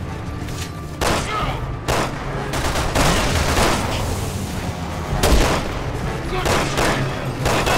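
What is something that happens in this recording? Gunshots ring out in bursts with echoing tails.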